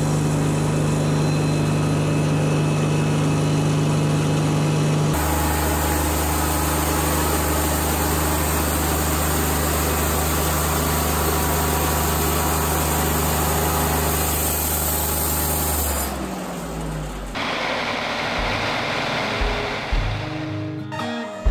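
A sawmill engine hums steadily and then quiets.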